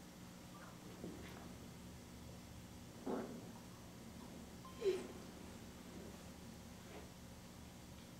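Children ring handbells a few times, with pauses between.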